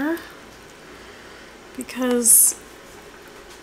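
Water pours into a paper cup.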